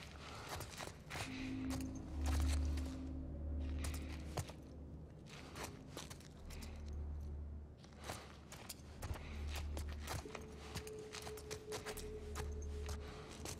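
Footsteps creak softly on a wooden floor.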